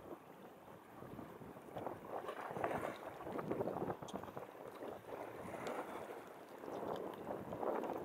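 A fish flaps and rustles in a hand.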